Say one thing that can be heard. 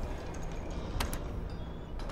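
A button clicks as it is pressed.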